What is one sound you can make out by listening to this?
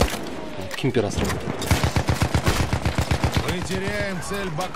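A machine gun fires rapid bursts up close.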